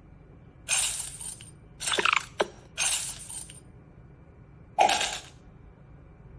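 A tablet game plays short bright coin jingles.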